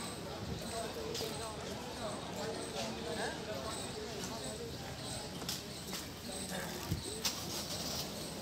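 A crowd of men and women chatter outdoors, some way off.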